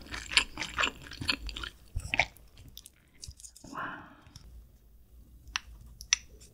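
Chopsticks click against a porcelain spoon.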